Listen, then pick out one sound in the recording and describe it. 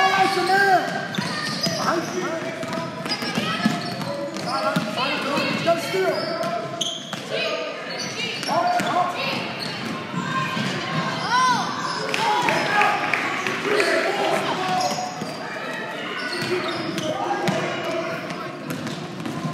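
Young players and spectators shout and call out in a large echoing gym.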